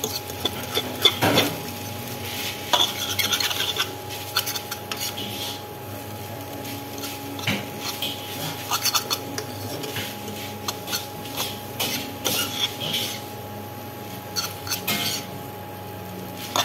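Noodles sizzle in a hot wok.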